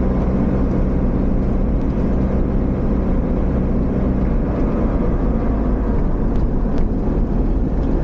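Tyres roll over a rough paved road.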